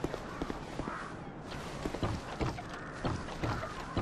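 Wooden ladder rungs knock and creak.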